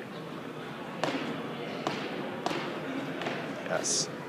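Shoes scuff sharply on a hard floor during a spin.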